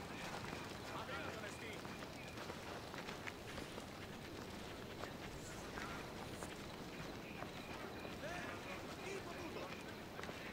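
Birds chirp now and then outdoors.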